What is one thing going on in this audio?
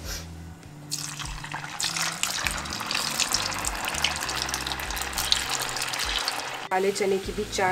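Food sizzles loudly as it fries in hot oil.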